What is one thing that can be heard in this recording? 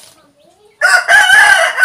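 A rooster crows loudly and close by.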